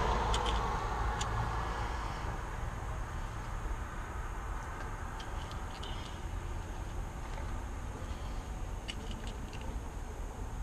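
Small metal parts clink and rattle in a hand.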